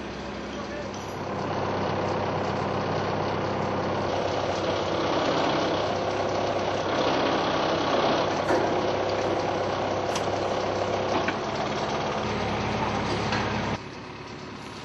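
A heavy machine's engine rumbles steadily.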